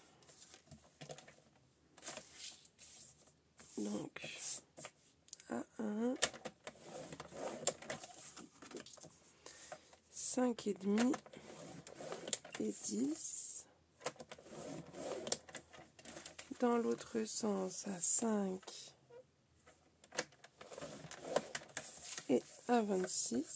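Card stock slides and rustles across a cutting mat.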